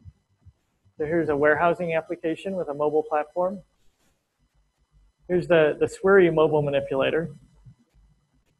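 A man speaks calmly through a microphone, in short bursts.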